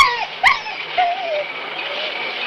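A dog whimpers briefly.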